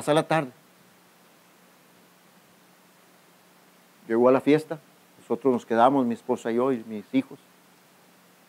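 A middle-aged man speaks calmly through a microphone and loudspeaker, with pauses.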